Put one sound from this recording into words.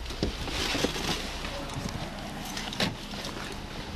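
A car door opens with a clunk.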